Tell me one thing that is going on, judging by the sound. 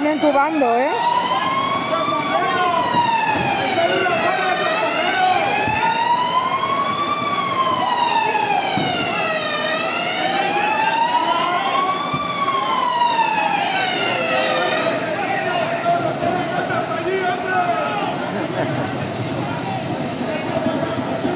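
A crowd of men and women talk and call out in the street below.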